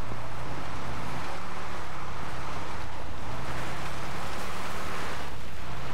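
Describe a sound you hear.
A heavy vehicle's engine rumbles steadily as it drives along.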